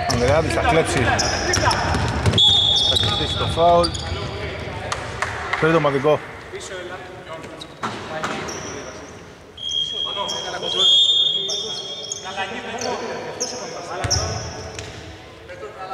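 Basketball shoes squeak on a hardwood court in a large, empty, echoing arena.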